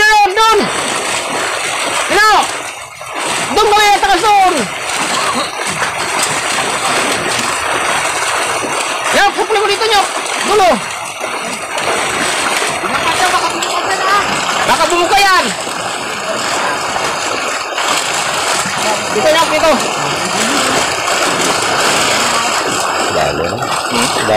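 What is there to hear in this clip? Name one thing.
Water splashes and churns steadily as a net is hauled through it.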